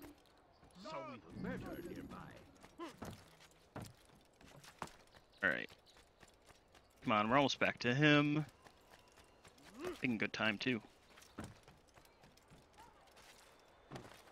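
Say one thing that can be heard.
Quick footsteps patter across rooftops and wooden planks.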